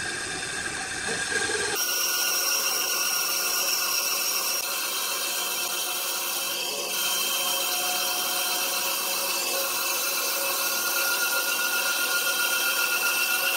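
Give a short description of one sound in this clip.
A band saw rips lengthwise through a log.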